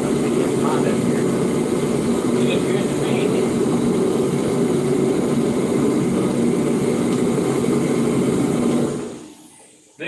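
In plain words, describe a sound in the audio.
A paint spray gun hisses with a steady rush of air.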